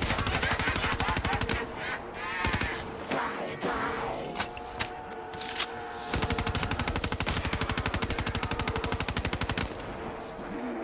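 A rapid-fire gun fires in fast bursts.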